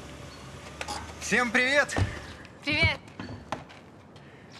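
An older man speaks cheerfully outdoors.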